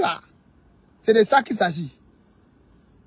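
A young man speaks briefly and casually close to the microphone.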